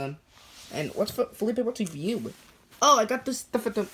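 Soft fabric rustles as plush toys are handled close by.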